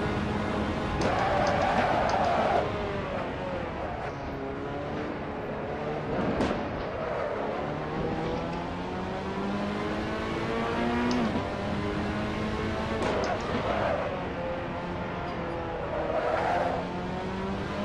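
Tyres squeal through the corners.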